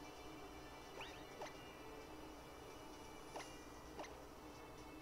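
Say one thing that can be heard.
Short electronic game tones chime.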